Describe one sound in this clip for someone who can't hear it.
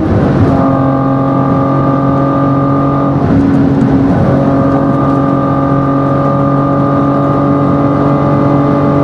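A car engine roars loudly at high revs, dropping briefly as it shifts gear.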